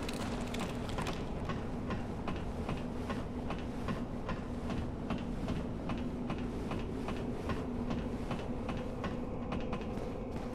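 Metal rungs clank rhythmically as someone climbs a ladder.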